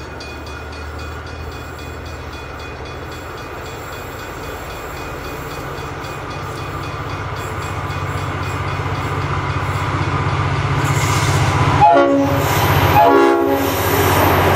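A diesel locomotive rumbles closer and grows louder.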